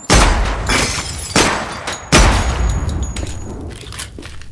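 A gun fires loud shots that echo away.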